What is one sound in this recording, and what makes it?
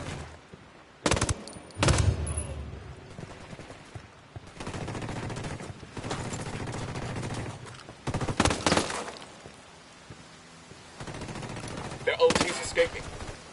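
Suppressed gunshots thud in short bursts.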